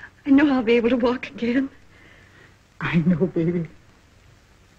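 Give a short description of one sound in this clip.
An elderly woman speaks with emotion, close by.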